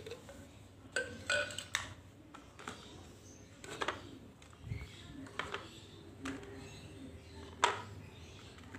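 Plastic bottles knock and clatter against a plastic basket.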